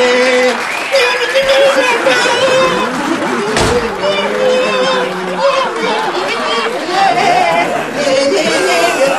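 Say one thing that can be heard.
A man talks loudly and laughs close by.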